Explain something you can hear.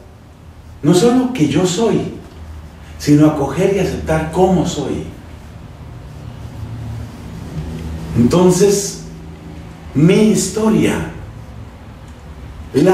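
A middle-aged man speaks with animation through a clip-on microphone.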